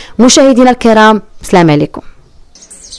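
A young woman speaks with animation into a microphone close by.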